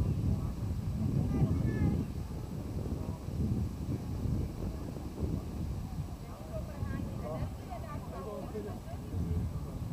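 Men call out faintly across an open field.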